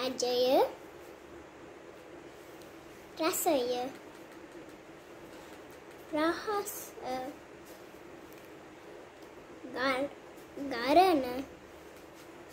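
A young girl speaks close by in short, lively bursts with pauses between.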